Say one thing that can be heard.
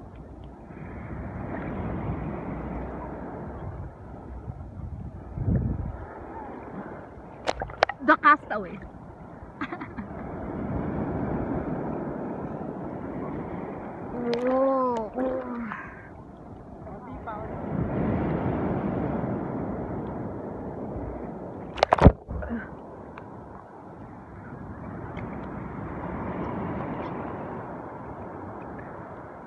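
Gentle waves lap and slosh close by in open water.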